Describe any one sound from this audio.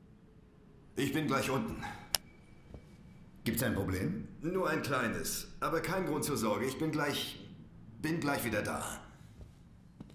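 A young man talks back in a low, tense voice.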